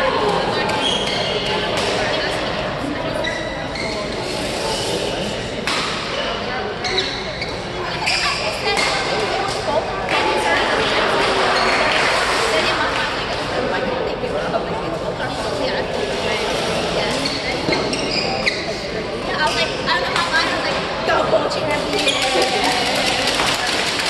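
Shoes squeak on the floor.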